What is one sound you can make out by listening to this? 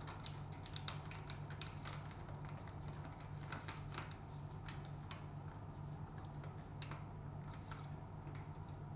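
Paper rustles and crinkles in a person's hands close by.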